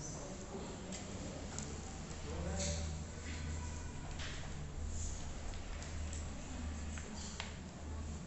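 Wooden matchsticks tap softly on paper.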